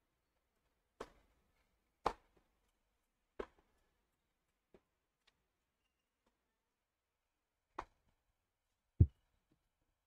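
A tennis ball bounces a few times on a hard court.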